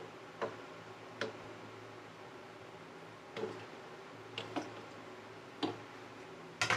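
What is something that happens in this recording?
A wooden spoon clinks and scrapes against a metal pot.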